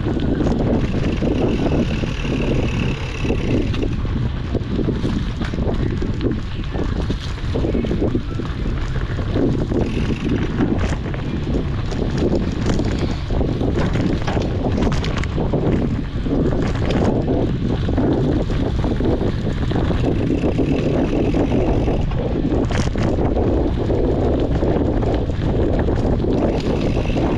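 A bicycle frame clatters and rattles over bumps.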